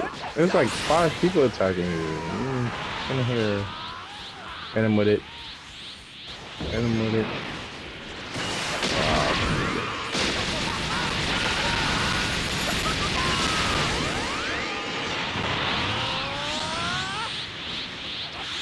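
Sharp impacts thud and crash.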